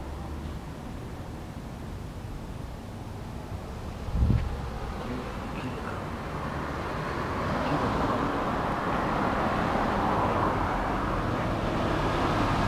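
A motorcycle engine idles nearby with a low, steady rumble.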